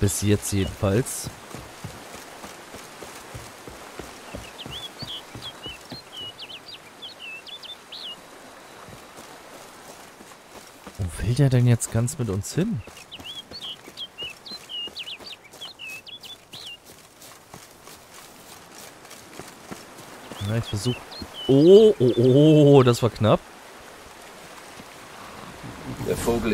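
Footsteps crunch steadily along a path.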